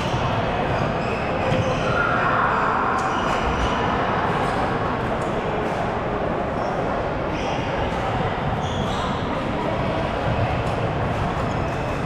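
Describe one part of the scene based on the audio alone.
Rackets strike a shuttlecock back and forth.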